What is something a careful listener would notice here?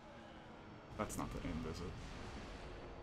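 A fiery explosion bursts with a whoosh.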